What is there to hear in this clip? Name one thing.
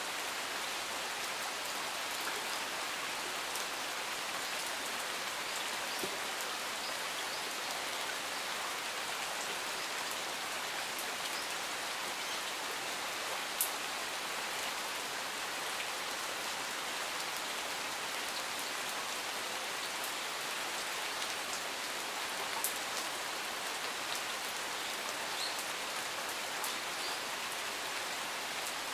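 Steady rain patters on leaves and gravel outdoors.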